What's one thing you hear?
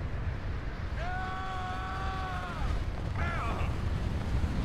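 A young man cries out close to a microphone.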